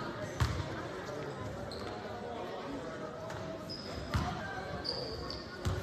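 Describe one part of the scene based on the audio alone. A crowd murmurs softly in the stands.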